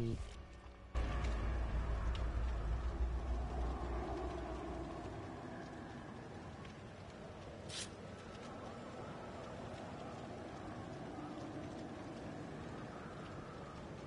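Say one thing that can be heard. A campfire crackles and hisses softly.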